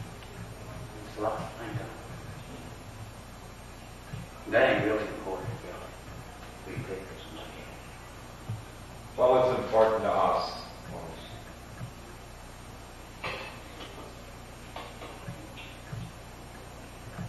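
A man speaks slowly and haltingly, close by in a small room.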